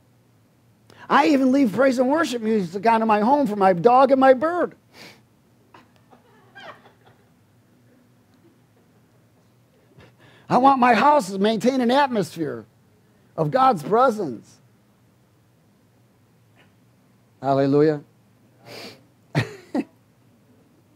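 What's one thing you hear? A middle-aged man speaks with animation through a headset microphone, with pauses.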